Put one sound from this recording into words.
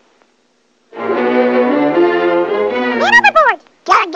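A cartoon chipmunk chatters in a high squeaky voice.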